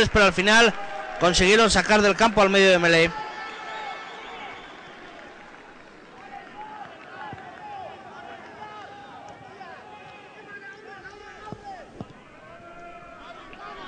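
A crowd murmurs and calls out in an open stadium.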